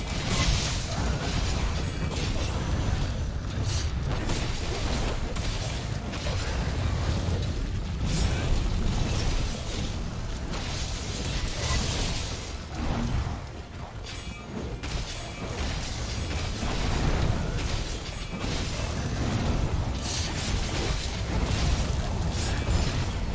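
Fiery explosions burst and rumble loudly.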